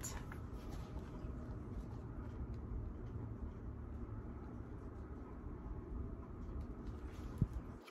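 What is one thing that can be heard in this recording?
Stiff book pages rustle as they are handled.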